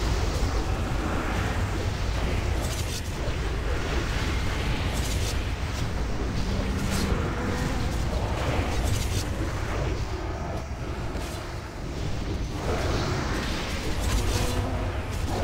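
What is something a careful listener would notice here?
Magic spells burst and whoosh.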